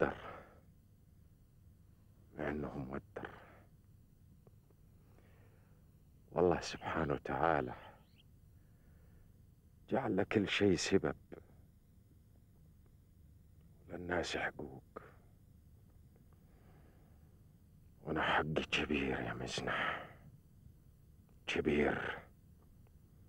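A man speaks close by in short, halting phrases with pauses between them.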